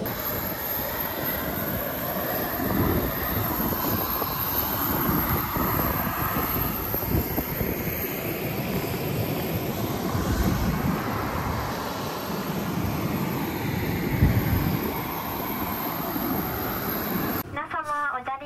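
Strong wind blusters and rumbles across the microphone outdoors.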